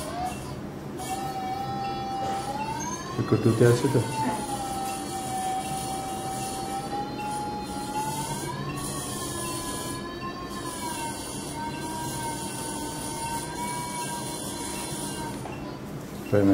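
A surgical machine gives off a steady tone that slowly rises and falls in pitch.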